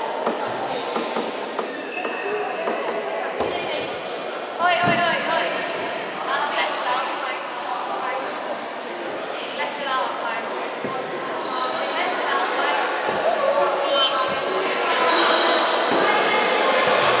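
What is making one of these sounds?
Players and spectators call out and chatter in the echoing hall.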